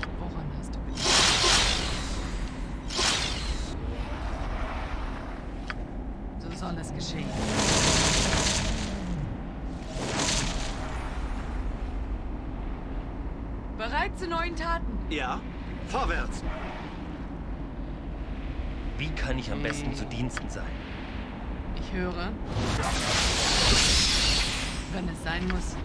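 Spells burst with loud whooshing noises.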